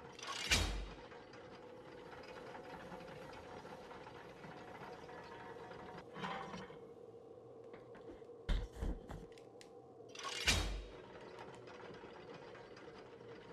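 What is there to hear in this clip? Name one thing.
A heavy lift rumbles steadily as it moves along a chain.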